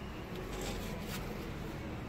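A paintbrush scrapes across a rough surface.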